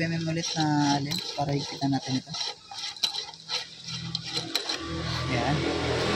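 A hex key clicks and scrapes against a metal bolt as it is turned.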